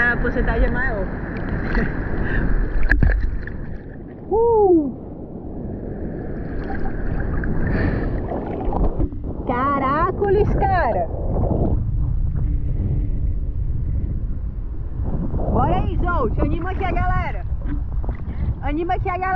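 Water sloshes and laps close by, heard from right at the surface.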